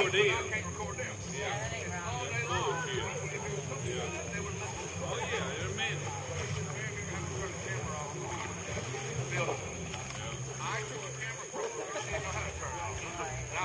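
Several men and women talk and call out with animation at a distance, outdoors.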